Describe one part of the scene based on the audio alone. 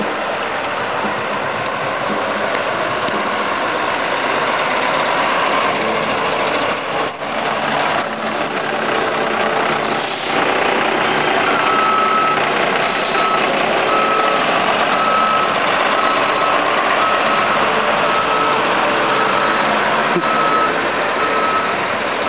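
A bus engine rumbles as the bus drives slowly past and turns nearby.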